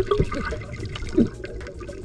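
Air bubbles burble and pop underwater.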